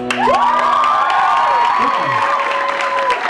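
Acoustic guitars play.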